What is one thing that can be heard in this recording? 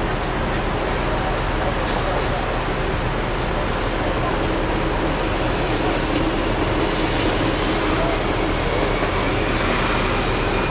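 City traffic hums steadily outside.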